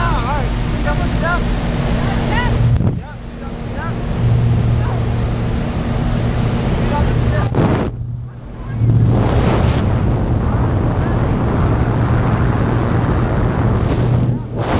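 A woman screams and laughs excitedly.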